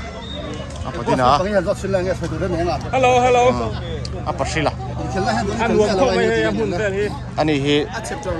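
A young man speaks cheerfully close by.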